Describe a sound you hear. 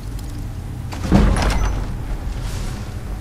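A heavy iron door creaks open with a loud clunk.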